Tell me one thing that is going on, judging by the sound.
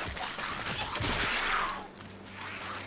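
Dirt and debris burst and scatter with a crash.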